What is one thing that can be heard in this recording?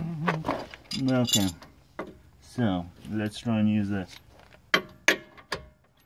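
A ratchet wrench clicks rapidly against a bolt.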